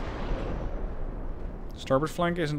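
Heavy naval guns boom and rumble away.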